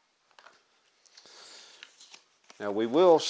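Stiff paper rustles as it is handled.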